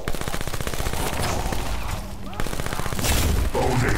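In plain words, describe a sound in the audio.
A weapon fires with loud zapping blasts.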